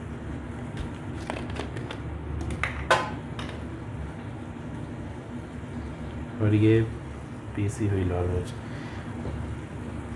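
Soup bubbles and boils steadily in a pot.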